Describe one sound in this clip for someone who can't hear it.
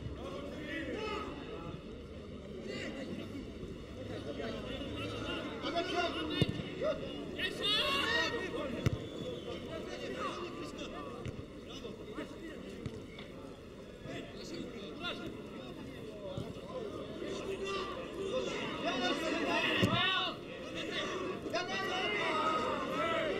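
A stadium crowd cheers outdoors.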